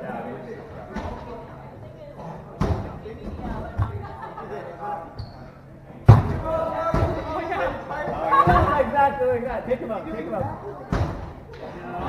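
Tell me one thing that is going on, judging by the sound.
Foam dodgeballs thud against players and bounce on a wooden floor.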